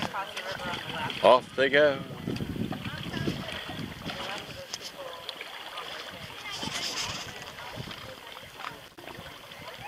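Canoe paddles dip and splash in water.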